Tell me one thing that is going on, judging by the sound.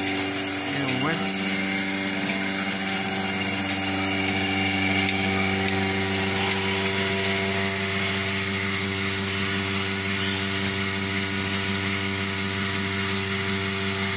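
A milking machine hums steadily.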